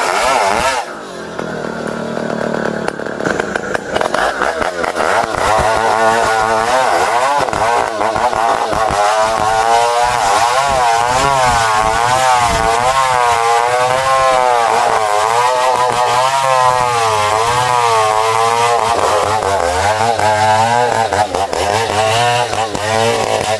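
A chainsaw engine roars and wavers in pitch as it cuts through a log.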